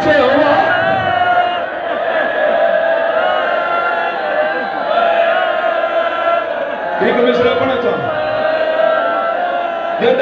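A crowd of men chants loudly together in a large echoing hall.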